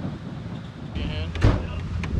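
A man steps up into a van with a thud.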